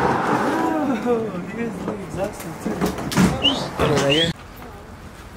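Young men shout and whoop excitedly close by.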